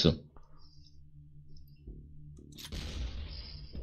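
A weapon fires with a whoosh.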